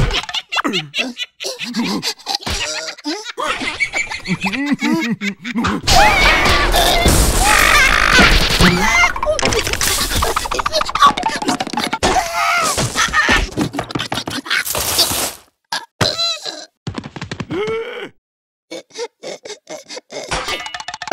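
Cartoon characters babble and squeal in high, silly voices.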